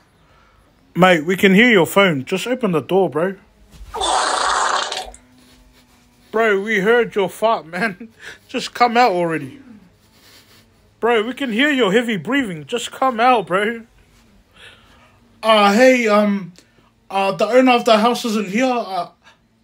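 A young man talks expressively and animatedly, close by.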